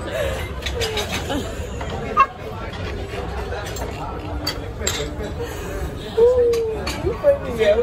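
A young woman laughs nearby.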